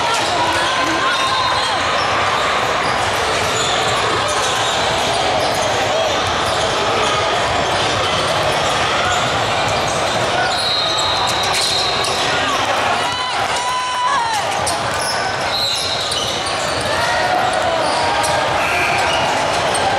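A crowd chatters and calls out in a large echoing gym.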